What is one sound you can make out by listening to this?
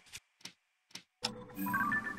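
A soft chime sounds.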